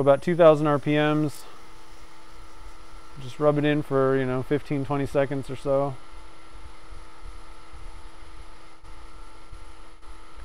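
Sandpaper rubs lightly against a spinning rod.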